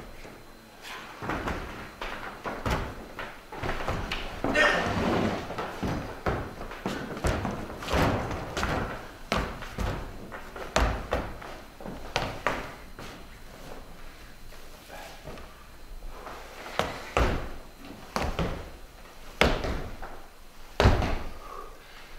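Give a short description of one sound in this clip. Heavy canvas rustles and scrapes across a floor.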